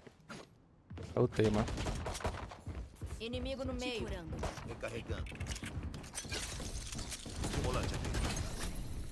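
Gunfire pops from a game.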